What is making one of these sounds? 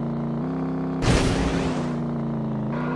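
A kart boosts with a loud whoosh.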